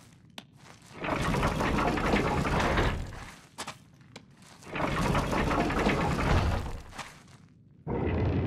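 A heavy stone pedestal grinds loudly as it turns.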